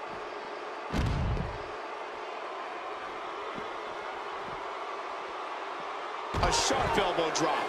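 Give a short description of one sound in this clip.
A body slams hard onto the floor with a heavy thud.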